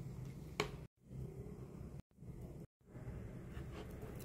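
Thick slime stretches and squelches softly.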